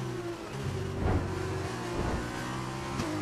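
Another racing car roars past close by.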